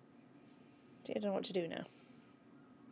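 A young woman speaks briefly and with animation into a close microphone.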